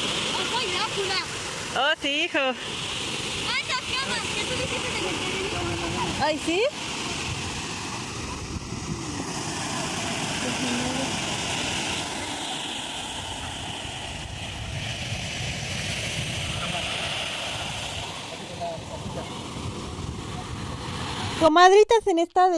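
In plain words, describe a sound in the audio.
Waves roll and break on the shore with a steady rushing sound.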